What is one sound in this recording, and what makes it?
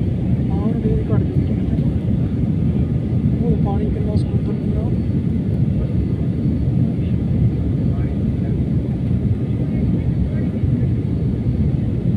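A jet engine roars steadily inside an airplane cabin.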